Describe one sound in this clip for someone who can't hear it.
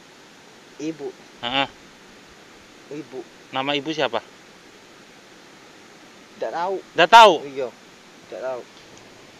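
A man speaks calmly in short phrases close by.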